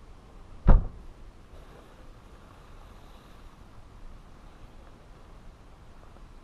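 A heavy canvas tarp rustles and flaps as it is raised.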